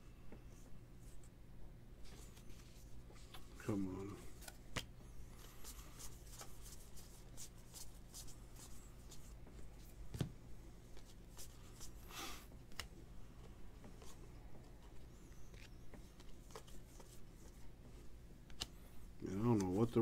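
Trading cards slide and flick against each other as a stack is shuffled through.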